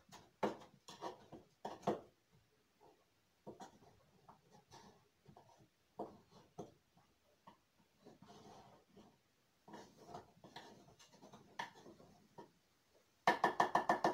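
A wooden pestle pounds in a mortar with repeated dull thumps.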